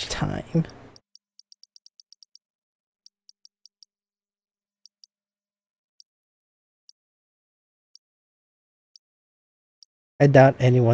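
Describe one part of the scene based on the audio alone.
Short electronic menu blips tick quickly as a cursor moves through a list.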